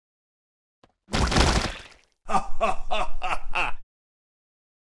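A short game tune plays as a round is lost.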